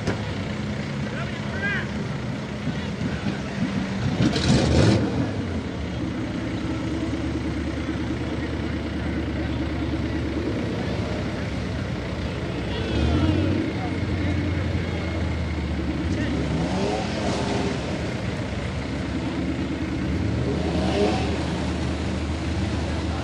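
A vehicle engine rumbles and revs while stuck in thick mud.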